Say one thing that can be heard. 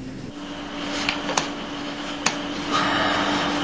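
Keys clatter as someone types on a computer keyboard.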